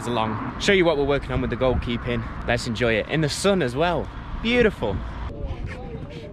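A young man talks calmly and close up.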